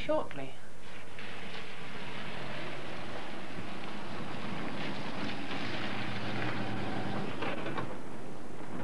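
A car engine hums as the car drives in and slows.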